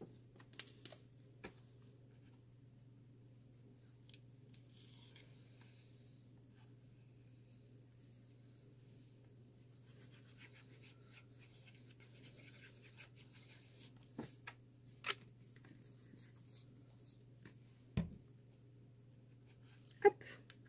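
Paper rustles and taps softly as a scrapbook is handled.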